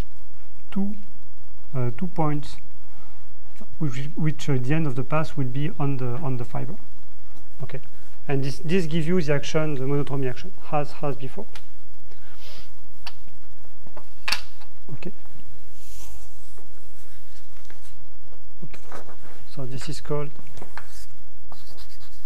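A young man speaks calmly, lecturing.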